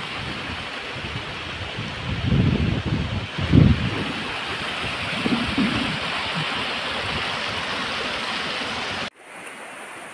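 A river of water flows and babbles steadily nearby.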